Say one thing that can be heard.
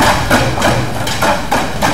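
Sticks beat a rhythm on a plastic drum.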